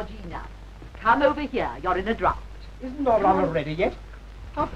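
A woman exclaims loudly.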